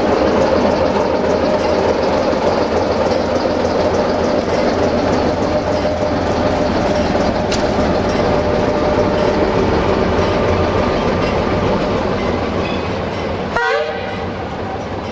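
A diesel locomotive engine rumbles and drones steadily nearby.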